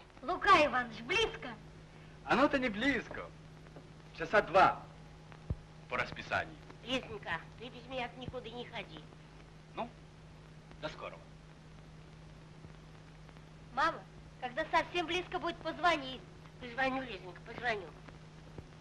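A woman speaks in reply nearby.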